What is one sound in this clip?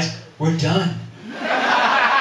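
A man speaks into a microphone over loudspeakers in a large room.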